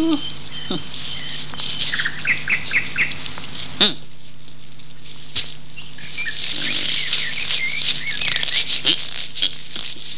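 Leaves rustle as a man pulls at a branch.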